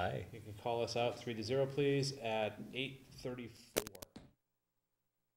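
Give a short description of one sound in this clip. A middle-aged man speaks calmly into a microphone in a room.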